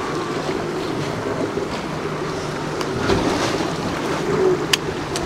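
Wind blows over open water.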